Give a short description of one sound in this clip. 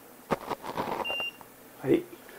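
A torque wrench gives a short high beep.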